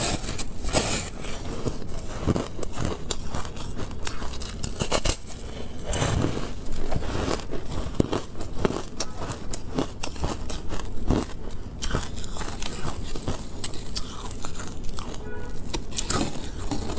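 Ice crunches and cracks loudly as a young woman bites and chews it close to a microphone.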